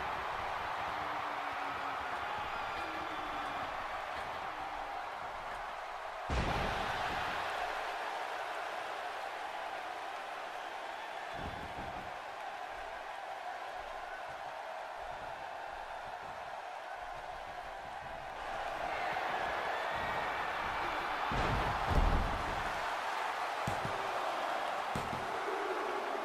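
A large crowd cheers steadily in a big arena, swelling louder near the end.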